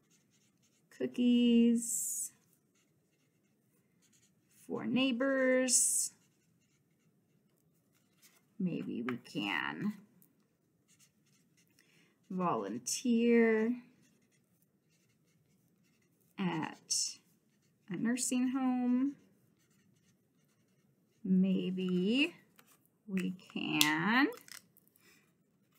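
A woman speaks calmly close by, in short phrases with pauses.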